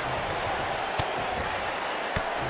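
Heavy thuds of bodies hitting a wrestling mat ring out.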